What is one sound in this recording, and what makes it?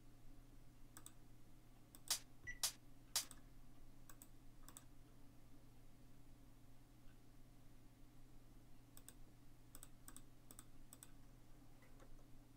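Keys on a keyboard click softly.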